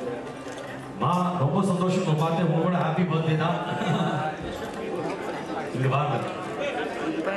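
A man speaks with animation into a microphone over a loudspeaker, in a large echoing room.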